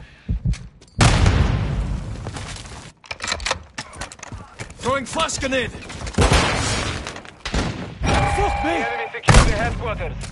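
Loud explosions boom with a deep rumble.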